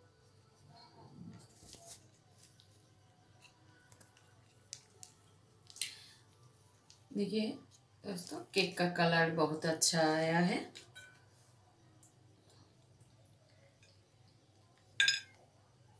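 Hands tear apart a soft bread with a faint rustle.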